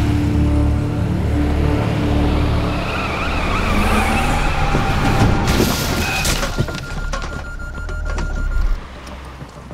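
A car engine roars as a car speeds along a road.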